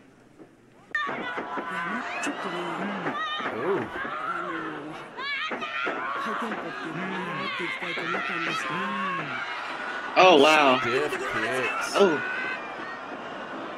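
A young man laughs and talks excitedly over an online call.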